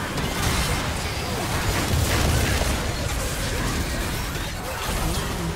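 Magic spells and weapon hits crackle and boom in a busy fantasy battle.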